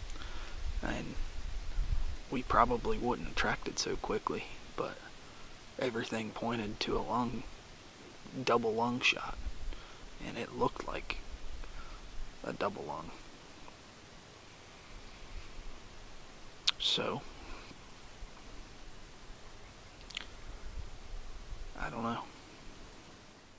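A young man speaks quietly and close up, in short bursts with pauses.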